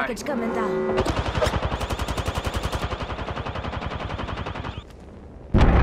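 An automatic rifle fires rapid bursts in a video game.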